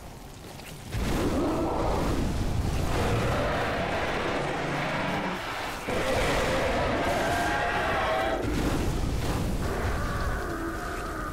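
A flamethrower roars in a steady rushing blast.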